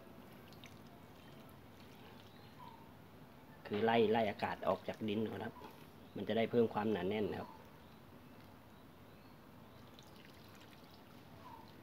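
Water trickles from a jar onto damp soil.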